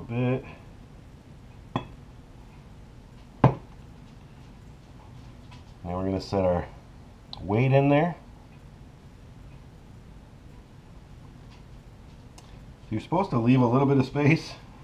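A man talks close by, in short bursts.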